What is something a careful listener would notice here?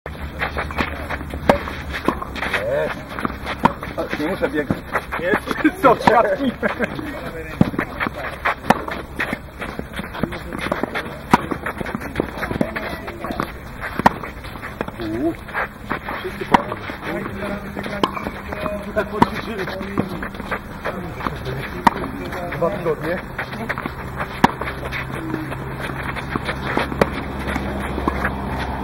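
Tennis rackets strike balls with sharp pops, again and again.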